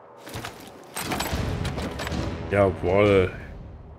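A heavy case lid swings open.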